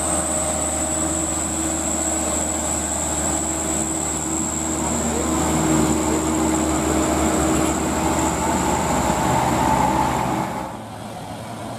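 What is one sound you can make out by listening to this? A loaded truck's diesel engine rumbles loudly as it drives by.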